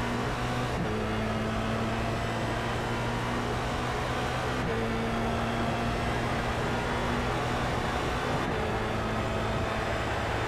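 A racing car engine roars at high revs, dropping briefly in pitch at each gear change.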